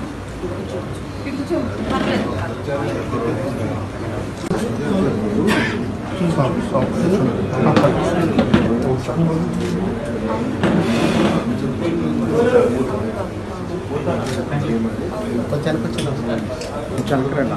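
A man talks calmly and closely.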